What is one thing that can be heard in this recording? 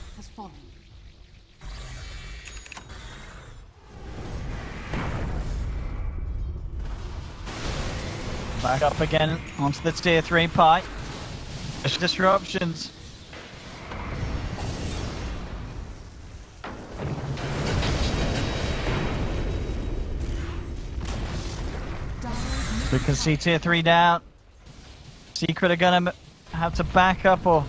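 Magic spells crackle and whoosh in a fantasy battle.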